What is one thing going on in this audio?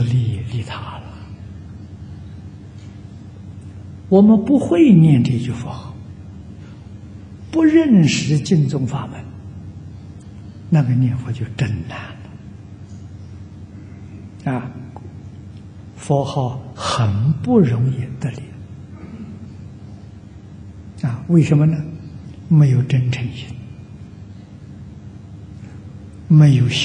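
An elderly man speaks calmly and slowly into a microphone, in short phrases with pauses.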